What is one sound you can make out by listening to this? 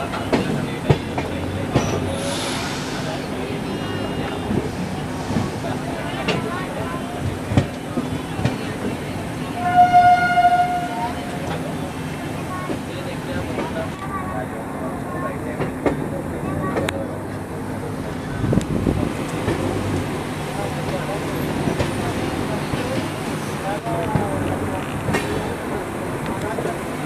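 An express train rumbles and clatters over the rails at speed, heard from on board.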